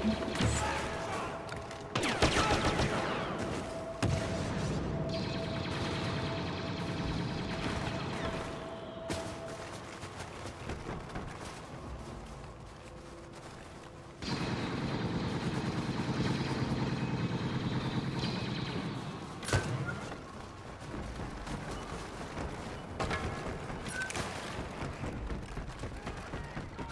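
Heavy footsteps run across a hard floor.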